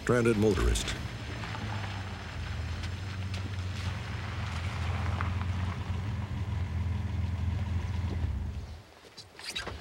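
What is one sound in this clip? A pickup truck engine rumbles as it drives up slowly.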